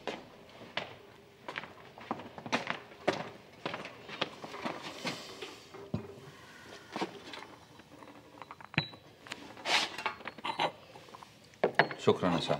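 Dishes clink on a tray.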